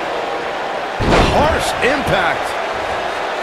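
A body slams hard onto a wrestling mat.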